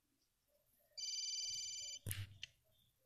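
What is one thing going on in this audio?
A game plays a short electronic ringing tone.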